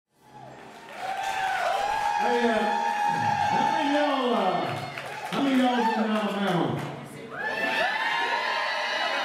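A live band plays loudly.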